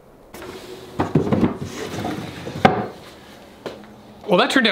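A wooden drawer slides and knocks shut.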